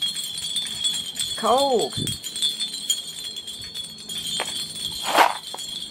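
Small glass pieces clink softly.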